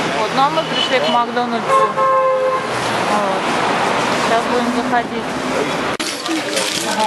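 Traffic hums along a busy street.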